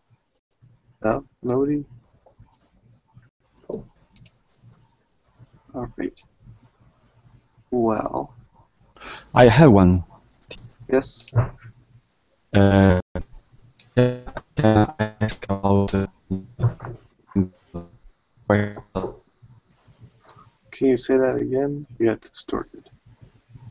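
A man speaks over an online call, in bursts with pauses.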